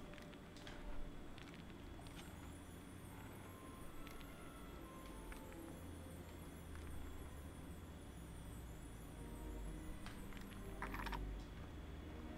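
A magical shimmering hum swirls steadily.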